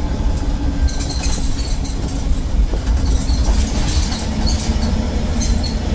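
Loose fittings rattle inside the moving bus.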